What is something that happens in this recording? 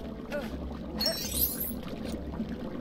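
Magical sparkles chime and whoosh.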